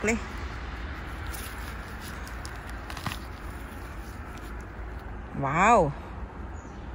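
A gloved hand rustles softly while handling a mushroom.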